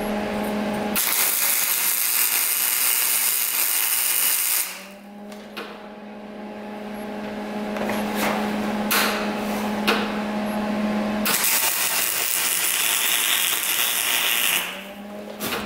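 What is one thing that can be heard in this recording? A MIG welder crackles and sizzles as it welds cast metal.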